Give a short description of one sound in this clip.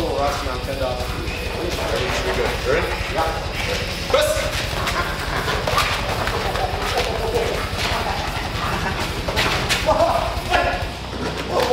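A man talks nearby with animation.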